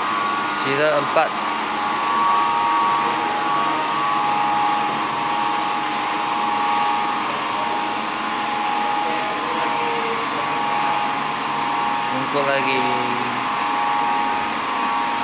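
Electrical control cabinets give off a steady, high-pitched hum.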